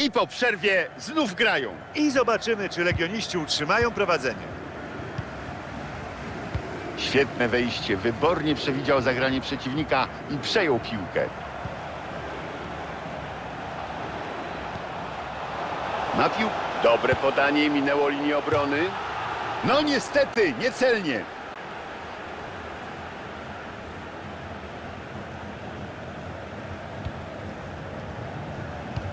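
A stadium crowd murmurs and cheers.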